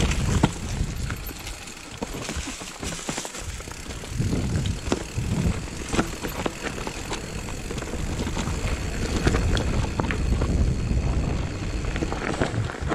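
Wind rumbles across a microphone outdoors.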